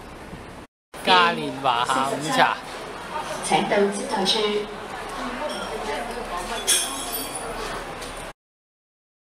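Men and women chatter in a crowded, busy room.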